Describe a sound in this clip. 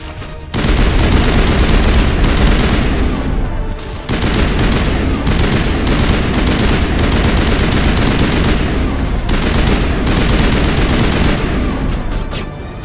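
Rapid gunfire crackles and booms without a break.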